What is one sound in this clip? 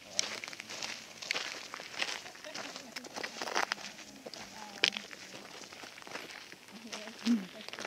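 Footsteps crunch on dry gravel.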